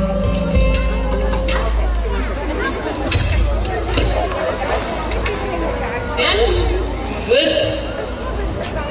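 A woman sings into a microphone over loudspeakers outdoors.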